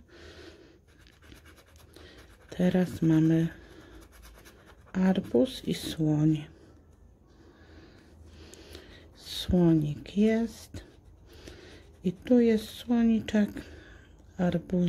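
A coin scratches across a card with a dry rasping sound.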